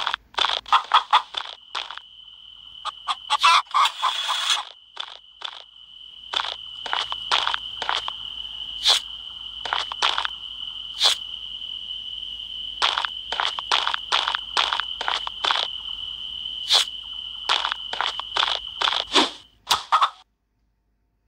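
Sharp chopping hits of a tool cutting plants repeat quickly.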